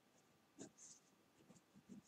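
A pencil scratches on paper.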